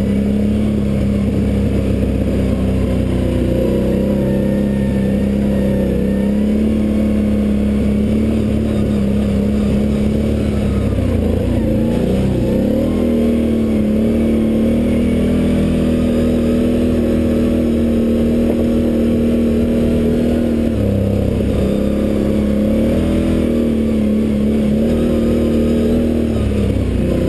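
A dirt bike engine roars steadily close by, rising and falling in pitch as the rider shifts and throttles.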